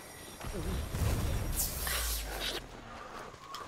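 A blade whooshes through the air and strikes.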